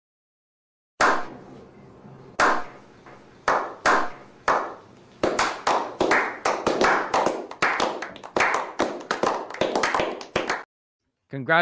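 A small group of men clap their hands.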